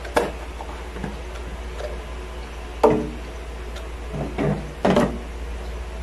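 A plastic lid clicks into place.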